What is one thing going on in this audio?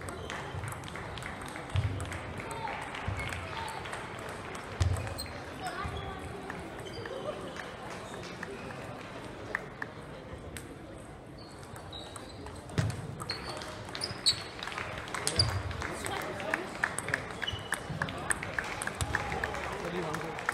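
Balls bounce and click on other tables nearby.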